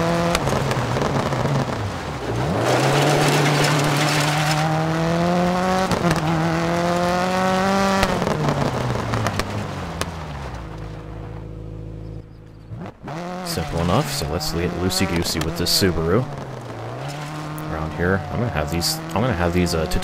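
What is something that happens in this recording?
Tyres skid and scatter gravel.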